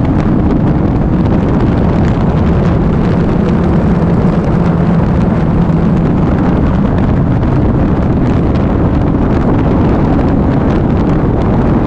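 A motorcycle engine hums steadily while riding at speed.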